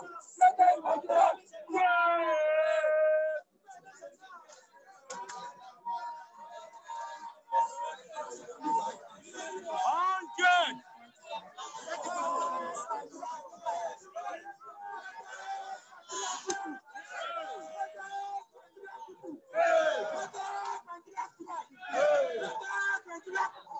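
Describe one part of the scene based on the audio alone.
A crowd of young men chants loudly outdoors.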